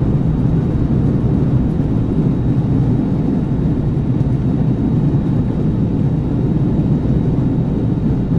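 Jet engines hum and rumble steadily, heard from inside an airliner cabin as it taxis.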